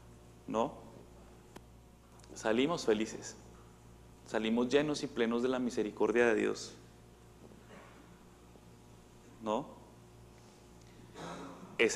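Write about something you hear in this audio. A man speaks through a microphone in short, calm phrases, in a room with a slight echo.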